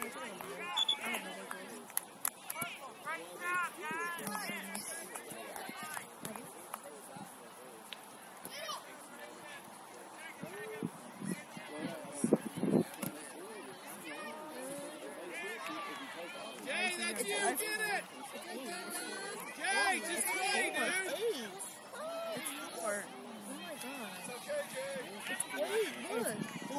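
Spectators call out and cheer from the sideline.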